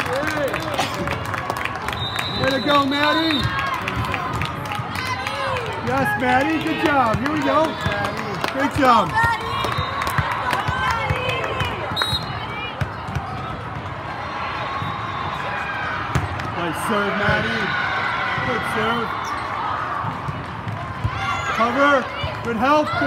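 Young women's voices call out and cheer across a large echoing hall.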